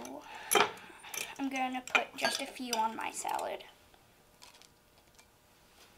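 A metal spoon clinks against a glass jar.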